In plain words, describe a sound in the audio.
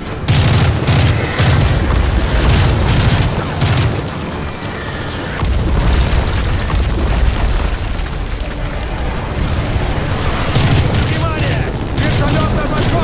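A rifle fires in rapid bursts nearby.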